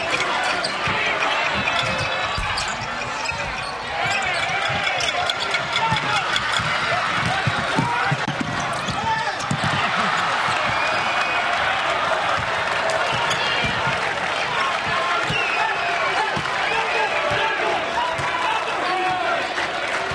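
Basketball shoes squeak on the court.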